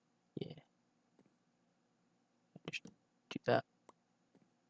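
Wooden blocks knock and thud as they are placed, several times.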